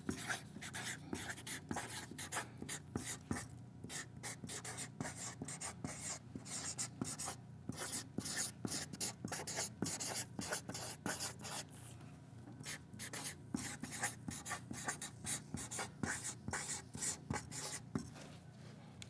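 A marker squeaks and taps on a whiteboard.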